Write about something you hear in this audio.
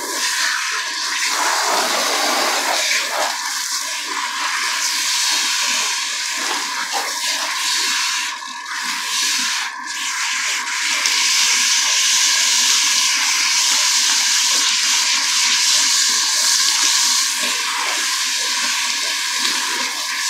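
Water sprays from a handheld shower head onto hair and scalp.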